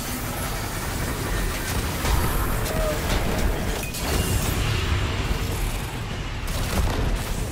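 An electric beam crackles and buzzes.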